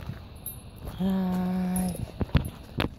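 A dog whines close by.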